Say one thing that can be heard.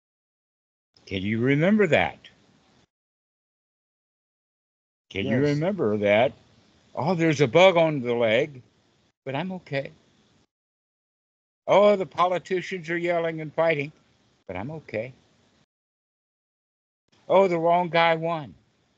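An elderly man talks with animation over an online call.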